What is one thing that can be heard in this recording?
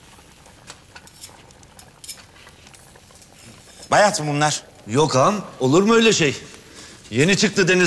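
Another middle-aged man answers calmly nearby.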